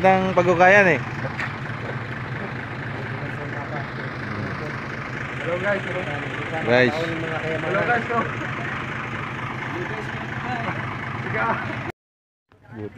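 A truck engine idles steadily nearby.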